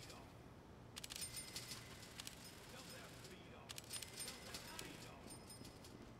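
Bright chimes ring out several times.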